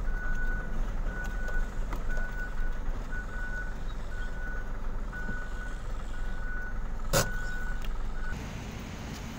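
A truck engine rumbles at low idle nearby.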